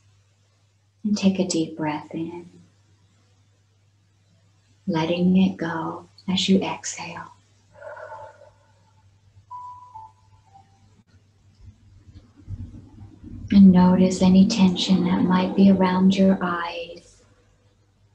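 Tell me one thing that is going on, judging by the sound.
A woman speaks calmly and slowly with pauses, heard through an online call.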